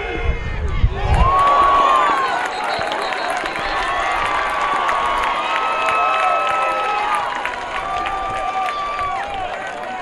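A crowd cheers and roars across an open stadium.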